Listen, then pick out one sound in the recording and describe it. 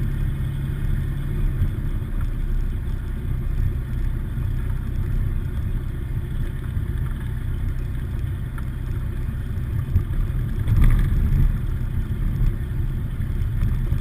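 Tyres rumble over the runway.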